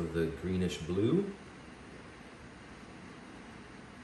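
A plastic cup is set down softly on a table.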